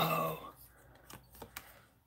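A foil card pack crinkles in someone's hands.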